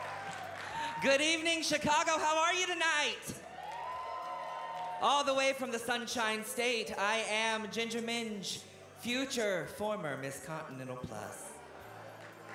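A performer sings with animation into a microphone.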